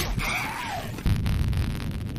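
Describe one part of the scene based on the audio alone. A stun grenade goes off with a loud bang.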